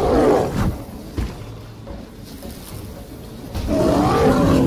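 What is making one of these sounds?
A sword strikes with sharp impacts.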